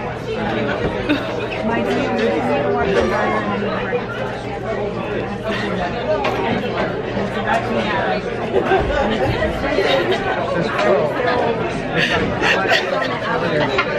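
A young woman talks close up, cheerfully.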